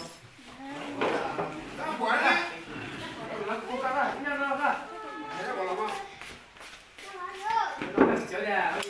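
Several men talk and chat close by.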